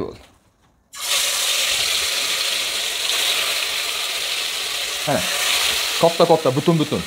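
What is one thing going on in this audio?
Meat sizzles loudly as it fries in hot oil.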